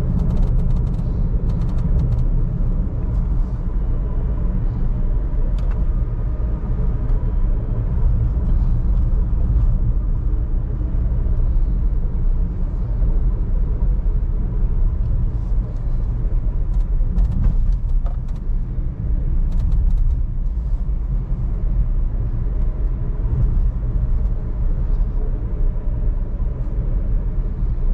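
Tyres rumble steadily on a paved road, heard from inside a car.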